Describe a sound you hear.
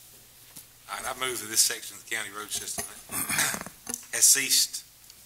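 A middle-aged man speaks into a microphone with light amusement.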